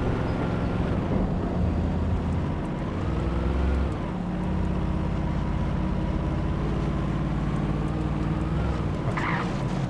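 A truck engine rumbles and revs steadily.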